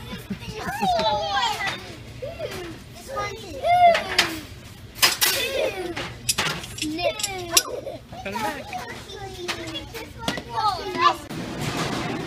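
Young children shout and laugh playfully nearby.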